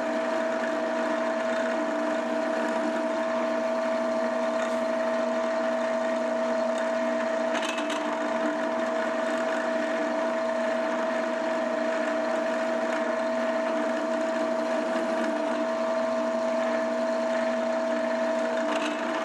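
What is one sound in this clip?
A milling machine whines steadily as its cutter spins.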